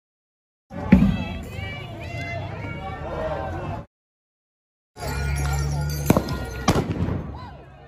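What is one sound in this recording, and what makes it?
Fireworks bang and crackle close by.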